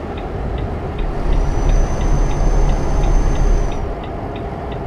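A large truck roars past close by.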